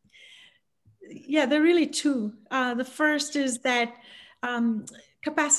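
A middle-aged woman talks with animation over an online call.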